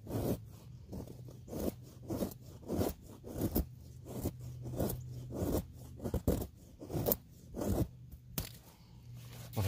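A knife shaves thin curls from a stick of wood in quick scraping strokes.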